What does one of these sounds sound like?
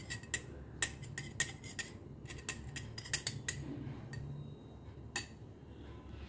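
A metal spoon clinks and scrapes against a glass.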